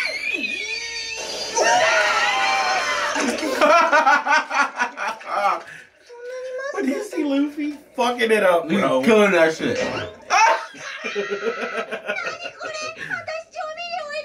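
Two young men laugh loudly close to a microphone.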